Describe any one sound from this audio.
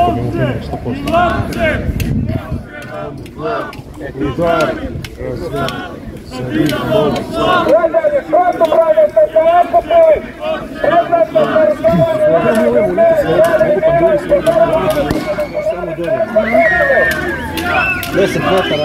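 A crowd of young people shouts and chants loudly outdoors.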